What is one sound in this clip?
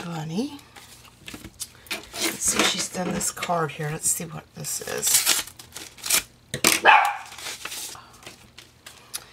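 A paper envelope rustles and crinkles as hands handle it.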